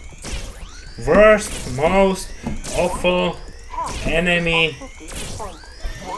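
A young man speaks loudly and with animation into a microphone.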